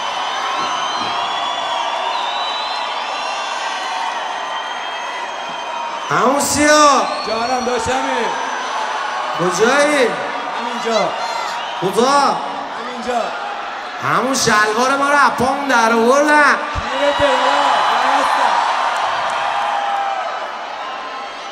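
A large crowd cheers and whistles in a big echoing hall.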